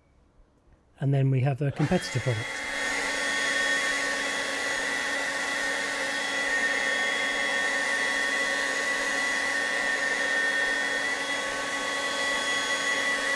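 A leaf blower starts up and whirs loudly with a steady whine.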